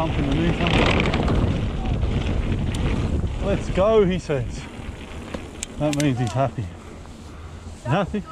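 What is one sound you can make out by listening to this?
Bicycle tyres rumble and crunch over a dirt trail.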